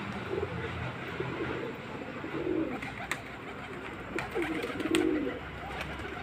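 Pigeons coo in low, throaty bursts close by.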